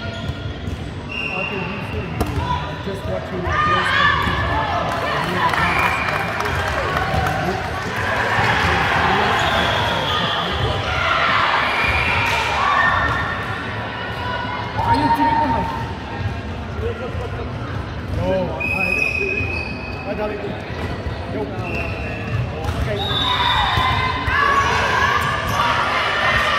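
Young women shout and call to each other across a large echoing hall.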